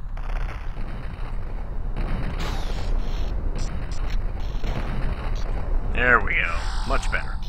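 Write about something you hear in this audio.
A weapon fires a shot.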